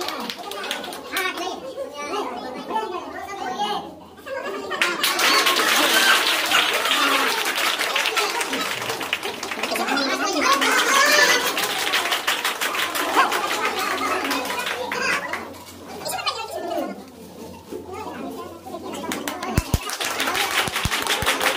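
A group of men and women chatter and cheer nearby.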